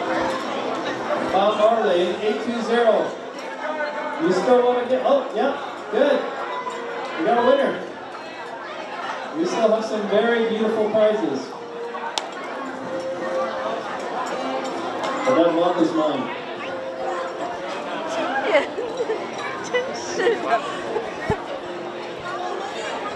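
A crowd of children and adults chatters in a large echoing hall.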